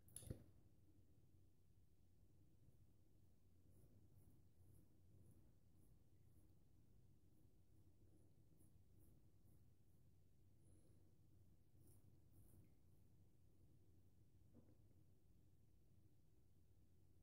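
A razor blade scrapes softly across stubble in short strokes.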